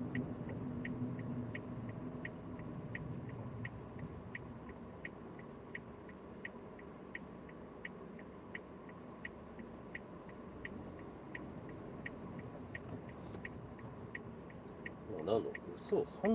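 A car engine hums steadily with road noise, heard from inside the car.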